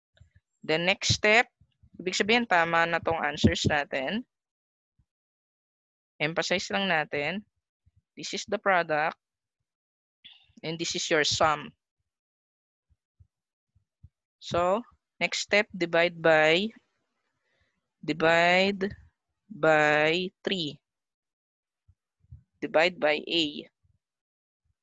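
A woman explains calmly in short phrases through a microphone.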